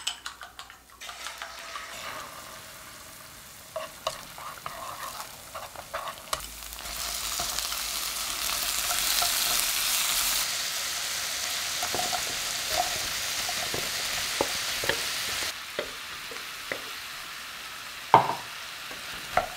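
Eggs and vegetables sizzle steadily in a hot pan.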